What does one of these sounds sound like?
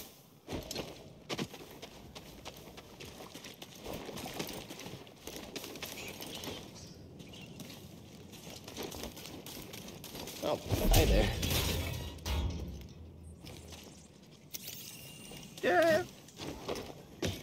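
Footsteps run through rustling grass.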